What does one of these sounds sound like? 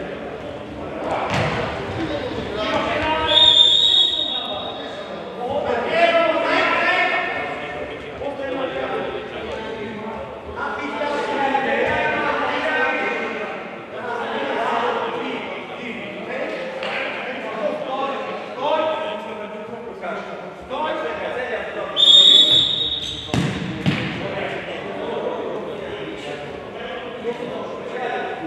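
Men shout and call out to each other in a large echoing hall.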